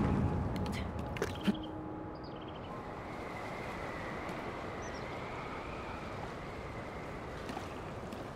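Water splashes and laps softly beneath a drifting raft.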